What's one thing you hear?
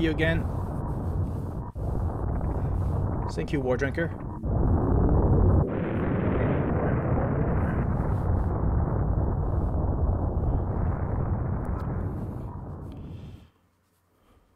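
A loud rumbling explosion roars and slowly fades in a game.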